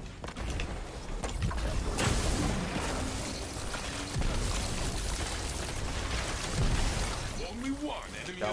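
Gunfire and blasts crackle and boom.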